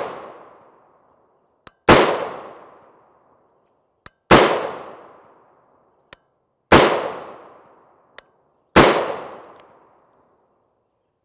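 A rifle fires loud single shots outdoors, each echoing away.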